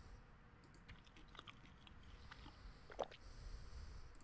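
Food is chewed with wet, crunchy bites.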